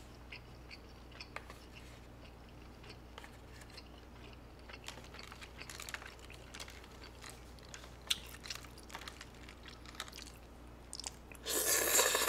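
Chopsticks click against a plastic bowl.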